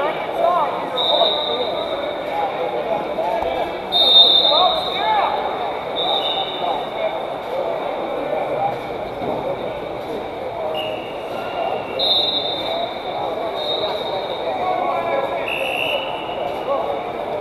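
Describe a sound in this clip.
Shoes squeak sharply on the wrestling mat.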